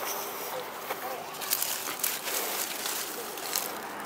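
Leaves of soybean plants rustle as a hand pushes through them.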